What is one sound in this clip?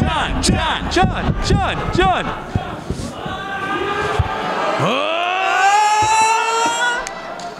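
A man speaks with animation through a microphone and loudspeakers in a large hall.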